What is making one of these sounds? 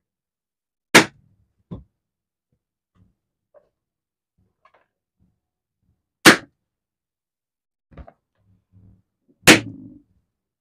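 Balloons pop loudly one at a time.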